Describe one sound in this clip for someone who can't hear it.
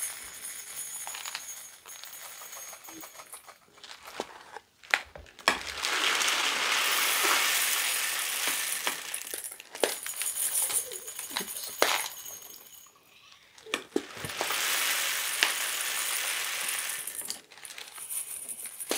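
A plastic bag crinkles and rustles loudly in someone's hands.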